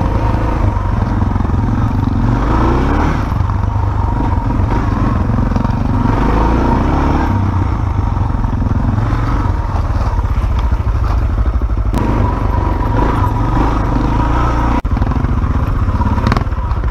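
A motorcycle engine roars loudly close by, revving up and down.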